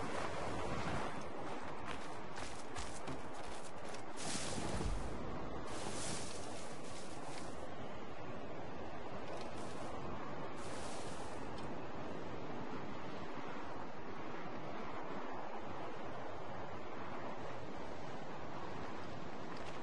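Strong wind blows steadily outdoors in a snowstorm.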